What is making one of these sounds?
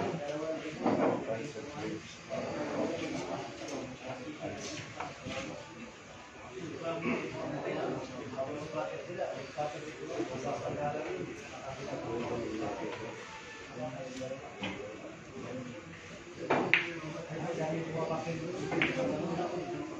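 Billiard balls click together on a table.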